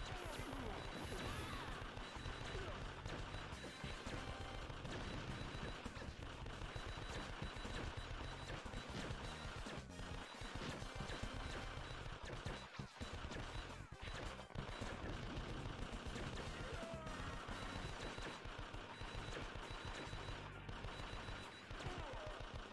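Video game music plays with a driving beat.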